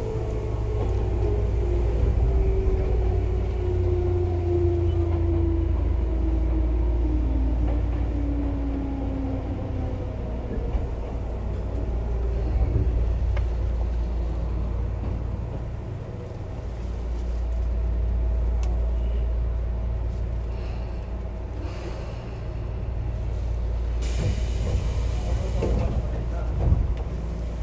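A train rumbles heavily on the tracks close by.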